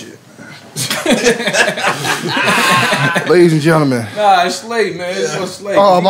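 Several men talk and laugh animatedly close to microphones.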